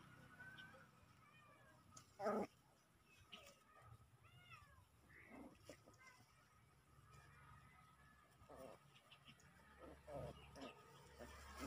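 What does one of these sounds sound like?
Grass rustles as puppies tumble through it.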